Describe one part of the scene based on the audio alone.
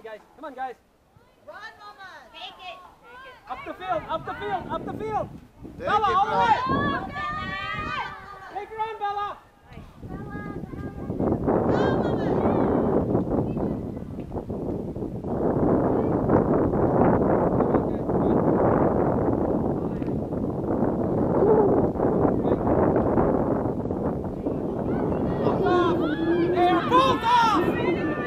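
Young women shout to each other outdoors from a distance.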